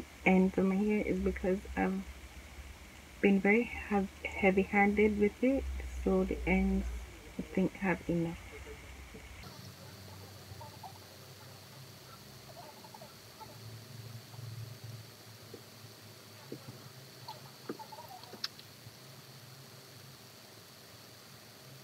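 Hair rustles softly as fingers twist it.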